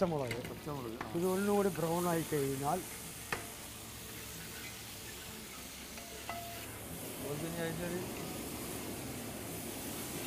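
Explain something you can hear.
A metal ladle scrapes and stirs in a large pot.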